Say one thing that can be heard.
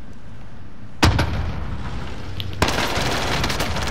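A gun fires in loud rapid bursts indoors.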